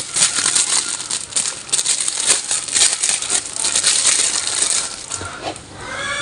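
Plastic wrap crinkles and rustles as hands unwrap a toy.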